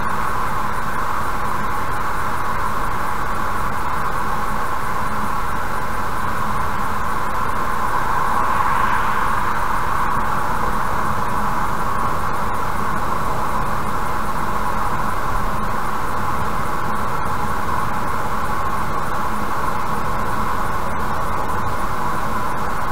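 A car's engine and tyres hum steadily on a motorway from inside the car.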